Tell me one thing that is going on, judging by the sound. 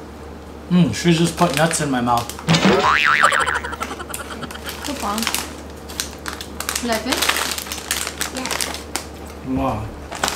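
A plastic snack bag crinkles.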